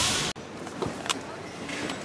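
Plastic caps rattle in a crate.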